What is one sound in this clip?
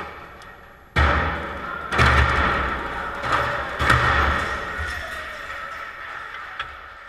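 Water rushes and splashes into a large tank in an echoing hall.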